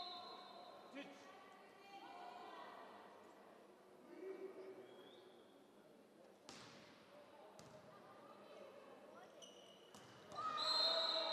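Young women players call out to each other.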